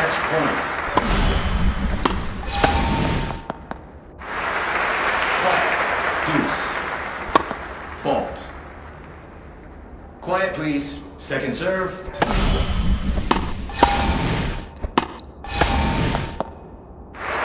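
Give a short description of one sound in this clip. A tennis racket strikes a ball with sharp pops.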